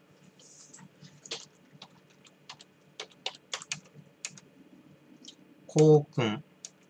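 Keys click on a laptop keyboard in quick bursts.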